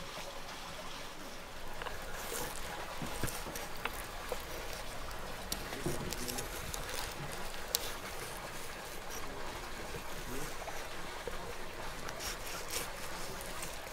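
A knife slices through raw fish flesh with soft wet scraping.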